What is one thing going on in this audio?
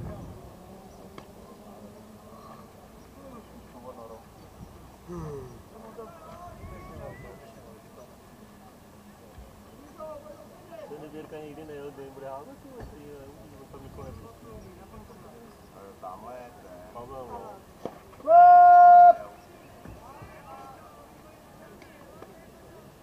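Men call out and chatter across an open field.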